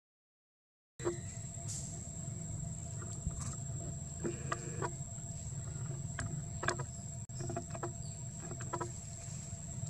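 A monkey chews and crunches on corn nearby.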